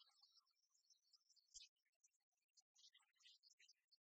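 Dice rattle and roll in a tray.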